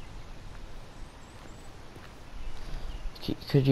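Footsteps crunch on gravel and dry grass.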